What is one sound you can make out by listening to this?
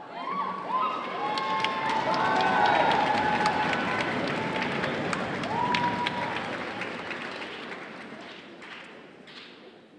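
Many people applaud in a large echoing hall, and the clapping slowly fades.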